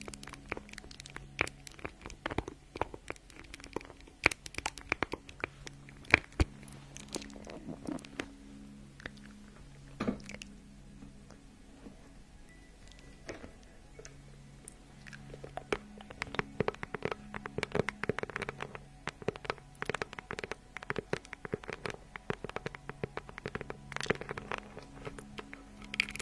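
Fingernails tap and scratch on a small handbag close to a microphone.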